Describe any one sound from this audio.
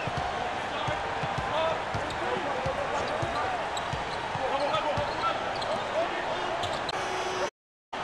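A large crowd murmurs and cheers in a big arena.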